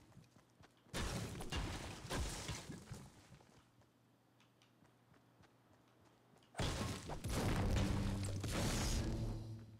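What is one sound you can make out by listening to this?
A pickaxe strikes stone with sharp knocks.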